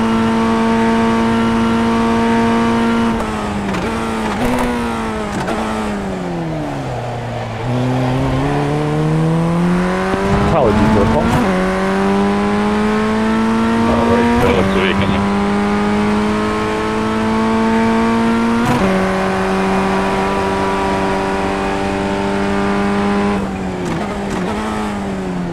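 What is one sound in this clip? A race car engine whines at high revs, dropping in pitch under braking and rising as it shifts up through the gears.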